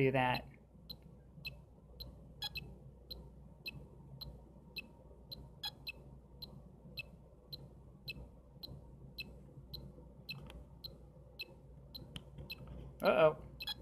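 A handheld game console plays short, regular electronic beeps.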